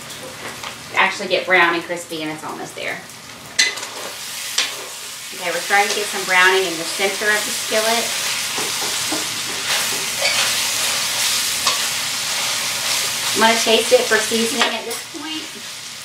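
A young woman talks calmly and clearly into a nearby microphone.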